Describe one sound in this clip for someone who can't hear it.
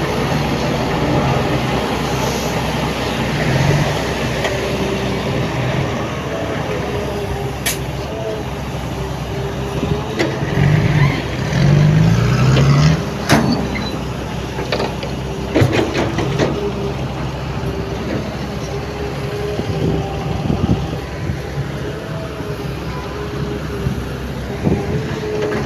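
A diesel truck engine rumbles steadily nearby.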